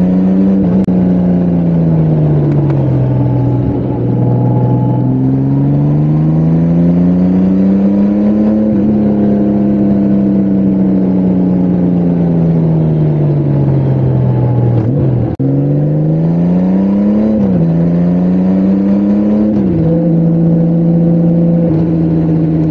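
A motorcycle engine hums steadily, rising and falling in pitch as the rider shifts gears.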